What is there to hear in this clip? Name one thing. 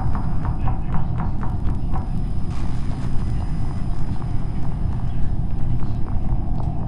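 Quick light footsteps patter on a hard floor.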